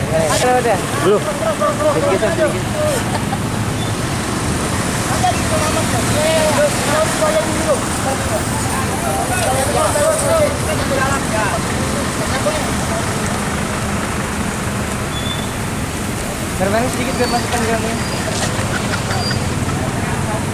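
A man calls out loudly outdoors.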